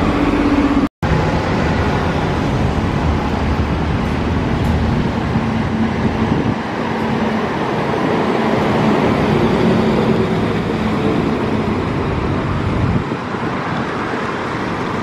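A bus engine rumbles loudly as a bus pulls in close by and drives past.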